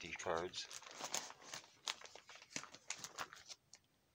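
Plastic binder sleeves rustle and crinkle as a page is turned.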